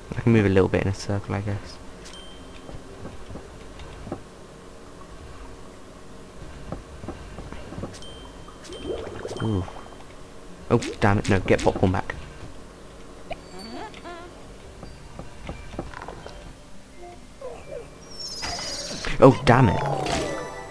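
Soft electronic game music plays steadily.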